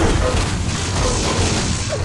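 A crackling energy weapon buzzes as it fires.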